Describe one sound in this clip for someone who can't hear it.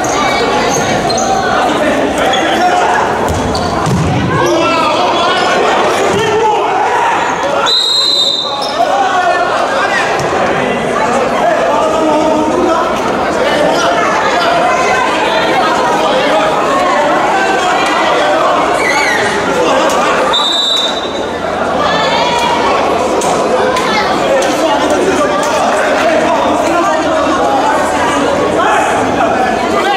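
Players shout and call out across a large echoing hall.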